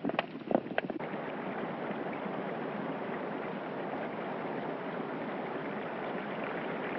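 Water splashes in a pond.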